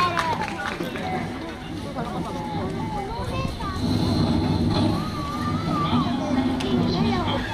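Upbeat music plays loudly through an outdoor loudspeaker.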